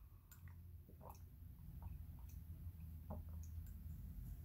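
A woman sips quietly from a mug.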